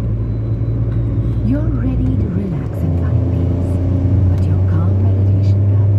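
A truck engine rumbles close ahead.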